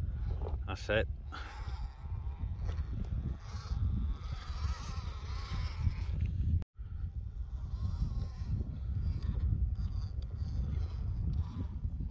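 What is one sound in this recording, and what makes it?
A small electric motor whines as a toy car drives.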